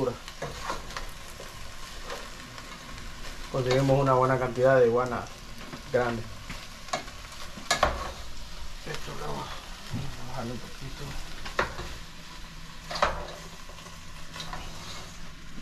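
A wooden spoon scrapes and stirs food in a pot.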